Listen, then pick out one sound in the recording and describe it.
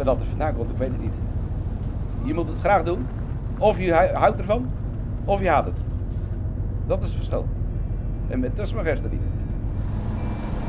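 A middle-aged man speaks calmly, close by.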